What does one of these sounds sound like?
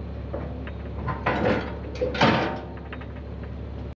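A metal ramp clanks down onto a wooden deck.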